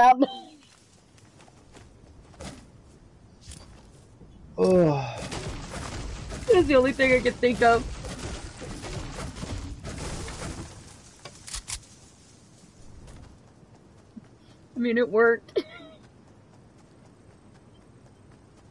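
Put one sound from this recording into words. Footsteps patter over grass.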